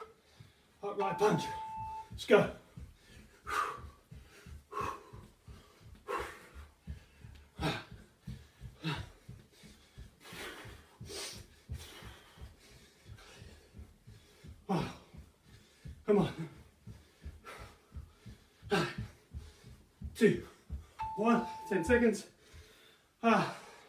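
Feet thump on the floor in a quick, steady rhythm.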